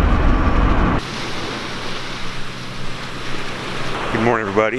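Ocean waves wash gently onto a beach.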